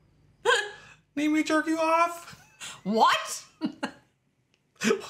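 A woman laughs loudly close to a microphone.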